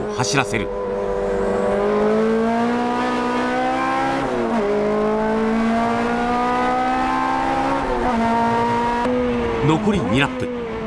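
A racing car engine roars loudly from inside the cabin, rising in pitch and dropping at gear shifts.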